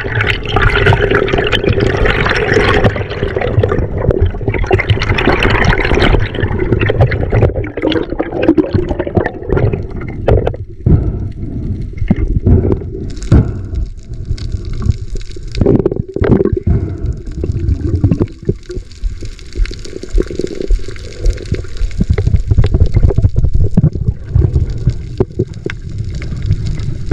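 Water rumbles and swishes around an underwater microphone.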